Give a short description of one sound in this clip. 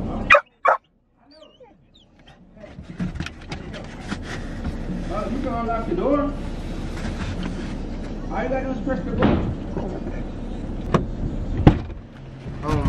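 A dog clambers over a car seat with rustling and thumps.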